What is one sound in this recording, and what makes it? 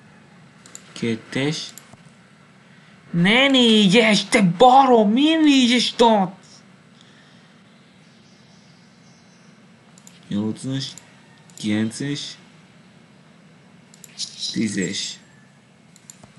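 A man talks close to a microphone in short bursts.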